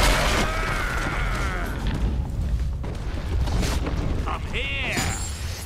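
Game spells whoosh and crackle as figures fight.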